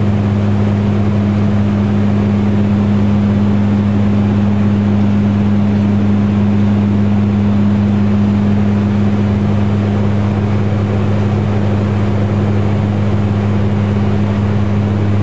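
Aircraft engines drone with a steady low hum throughout.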